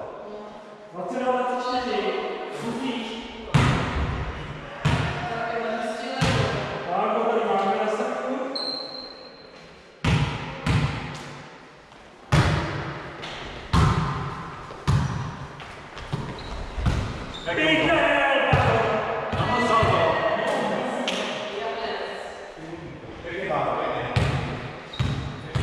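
Men talk and call out to each other in an echoing hall.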